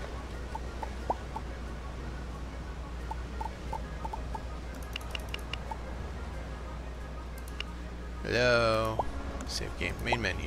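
Short electronic clicks sound as a game menu is browsed.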